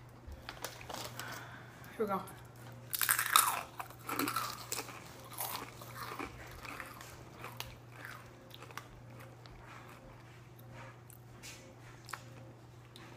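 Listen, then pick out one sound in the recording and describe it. Chip bags crinkle and rustle.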